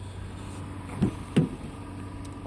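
A car door latch clicks open with a thud.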